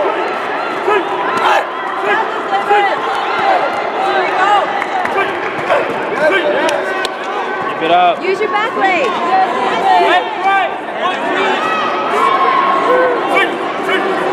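A crowd of people chatters and calls out steadily in a large echoing hall.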